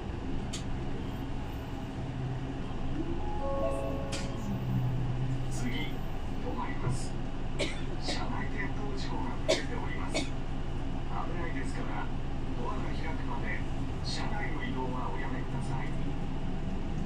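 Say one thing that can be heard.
Loose fittings inside a bus rattle and click now and then.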